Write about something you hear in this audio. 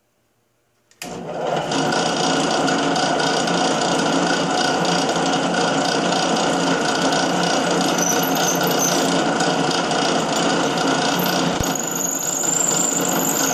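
A drill press motor whirs loudly and steadily.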